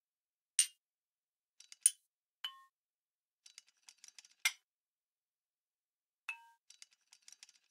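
A pointer taps lightly against a glass pane.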